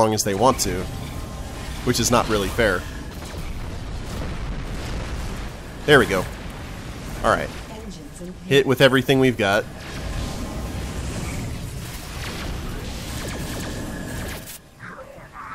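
Spaceship engines rumble low and steadily.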